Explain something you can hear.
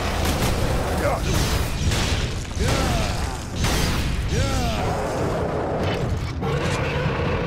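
A creature shrieks and growls.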